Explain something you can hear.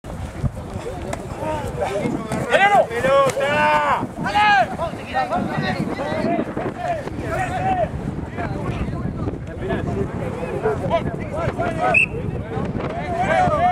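Men shout and call out loudly outdoors.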